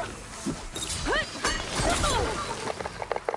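A machine creature screeches and whirs.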